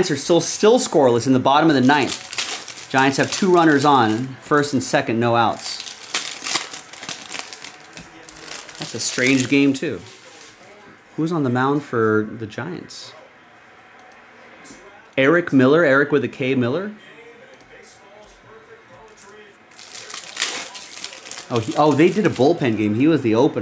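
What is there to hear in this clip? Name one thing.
Foil card packs rustle and crinkle as hands handle them.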